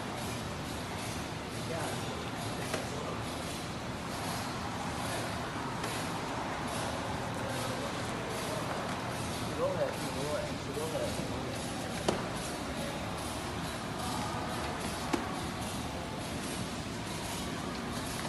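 A large machine hums and rattles steadily in a big echoing hall.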